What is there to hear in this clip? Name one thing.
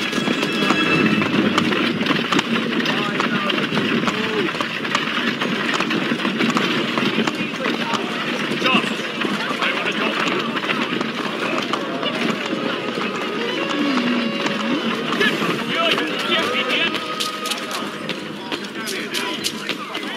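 Footsteps run quickly over cobblestones.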